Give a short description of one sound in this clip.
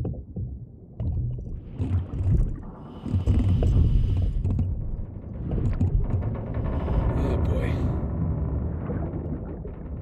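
Bubbles gurgle and rumble from a diver's breathing regulator underwater.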